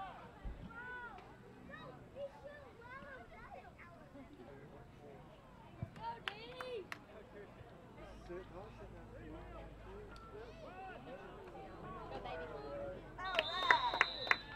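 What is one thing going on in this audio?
Young players shout across an open field.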